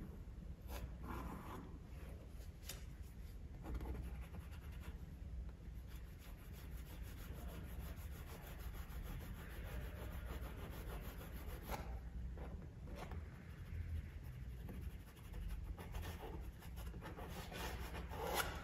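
A palette knife scrapes and spreads thick paint across a canvas.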